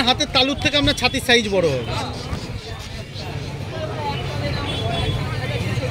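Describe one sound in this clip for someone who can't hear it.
Men and women chatter quietly in the background outdoors.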